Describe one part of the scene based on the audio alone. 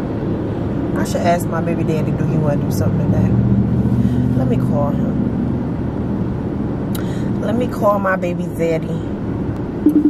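A young woman speaks casually and close by.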